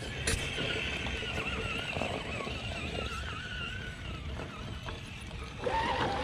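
Plastic tyres crunch and scrape over loose rocks.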